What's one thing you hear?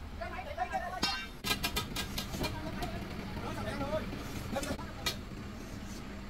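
Wooden beams knock and clatter.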